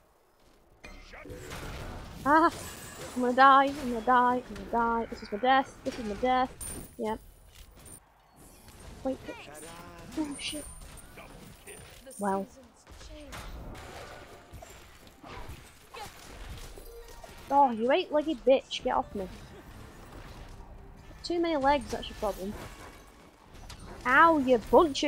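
A young woman talks animatedly into a headset microphone, close by.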